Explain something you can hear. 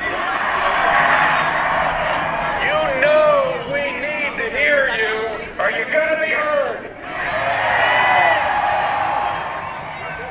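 A large outdoor crowd chants and cheers loudly.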